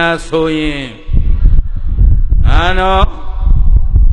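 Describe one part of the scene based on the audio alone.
A middle-aged man speaks through a microphone with drawn-out, wavering tones.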